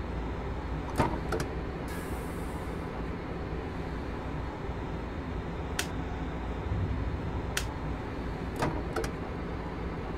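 Train wheels click over rail joints now and then.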